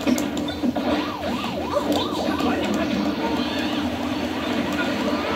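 Video game music plays from a television.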